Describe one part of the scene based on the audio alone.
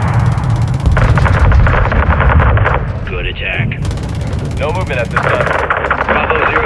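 A cannon fires in rapid bursts.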